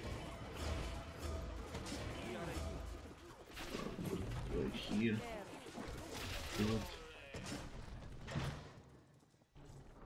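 Weapons clash in a battle.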